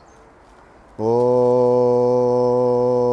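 A man chants a long, steady, deep note close by.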